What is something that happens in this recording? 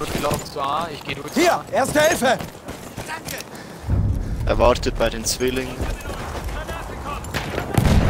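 Footsteps run over dirt and gravel.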